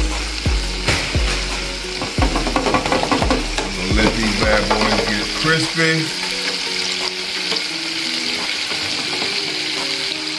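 Oil sizzles and bubbles steadily in a deep fryer.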